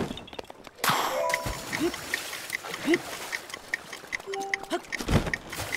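Water splashes as a swimmer paddles.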